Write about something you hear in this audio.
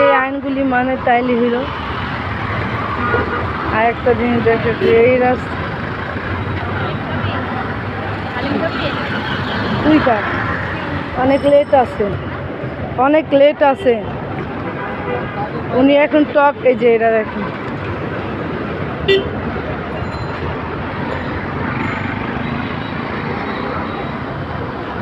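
Traffic rumbles steadily along a busy street.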